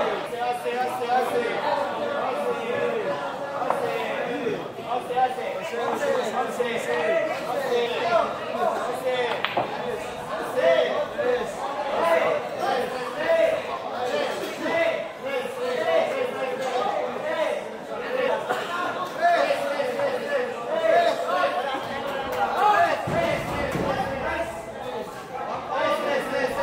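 A crowd of young men chatters and cheers loudly in an echoing hall.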